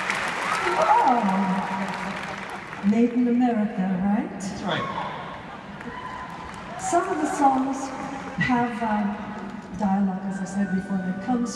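A woman sings through a microphone in a large echoing hall.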